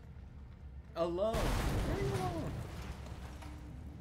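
A fiery explosion booms and roars.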